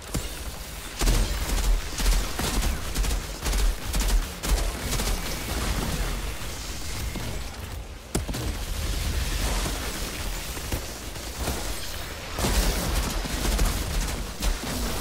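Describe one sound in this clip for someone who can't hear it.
Rapid gunfire blasts in bursts.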